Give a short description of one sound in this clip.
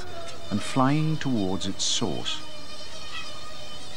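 A mosquito whines close by.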